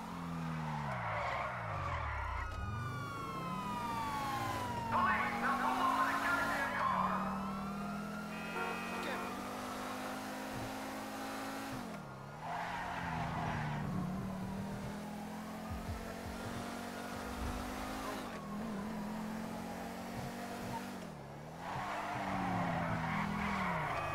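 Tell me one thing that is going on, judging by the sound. Tyres screech as a car skids around corners.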